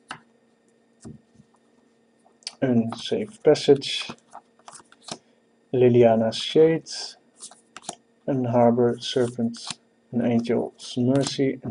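Playing cards rustle and click as they are flipped through by hand.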